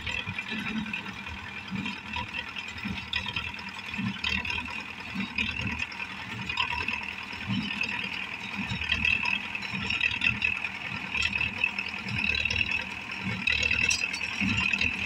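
A hay baler clatters and thumps rhythmically.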